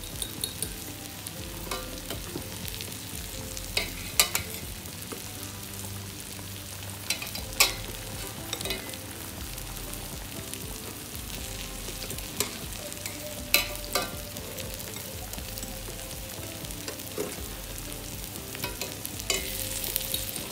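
Water bubbles and simmers in a pot.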